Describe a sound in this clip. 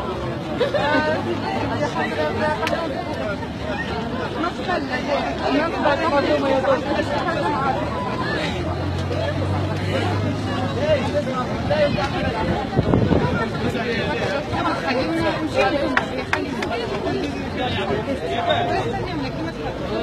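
A crowd of men and women chatters and shouts loudly outdoors close by.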